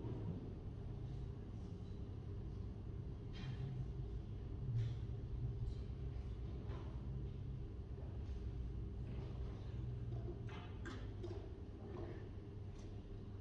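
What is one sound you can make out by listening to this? Fingers tap softly on a laptop keyboard.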